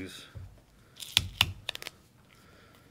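Tape peels and tears off a roll.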